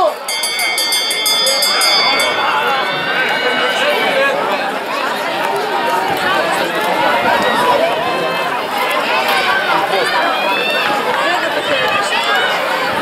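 A crowd of men and women chatters and calls out loudly outdoors.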